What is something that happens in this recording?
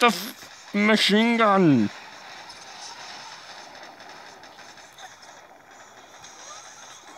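Cannons fire and shells explode in a video game.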